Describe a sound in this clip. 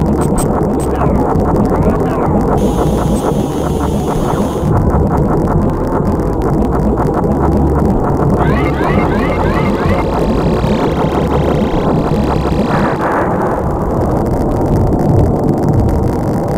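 Laser shots fire rapidly in a video game.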